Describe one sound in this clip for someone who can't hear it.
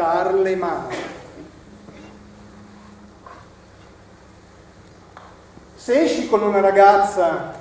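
An elderly man speaks expressively from across a hall, with long pauses between phrases.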